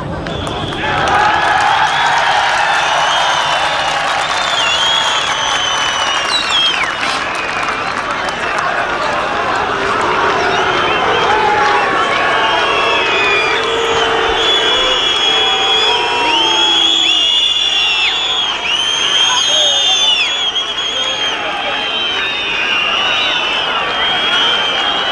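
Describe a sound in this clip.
A large crowd cheers and whistles loudly outdoors.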